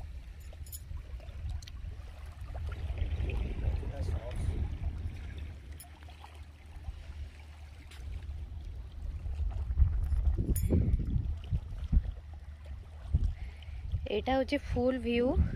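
Wind blows and rumbles across an outdoor shore.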